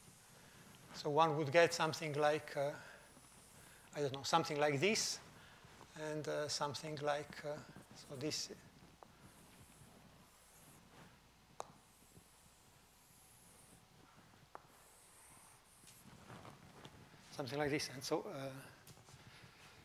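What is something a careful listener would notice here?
An older man speaks calmly through a microphone in a slightly echoing room.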